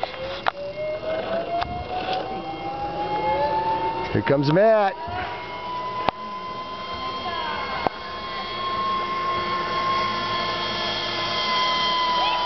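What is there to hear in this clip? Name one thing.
A zipline trolley whirs along a steel cable with a rising, steady whine.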